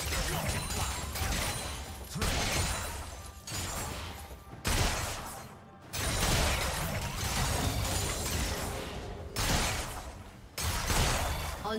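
Fantasy battle sound effects clash and burst in quick succession.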